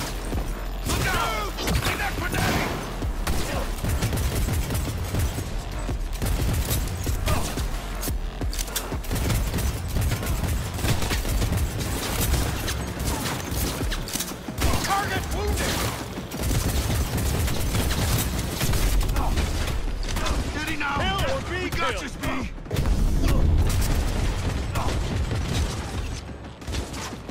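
Pistol shots fire rapidly in bursts.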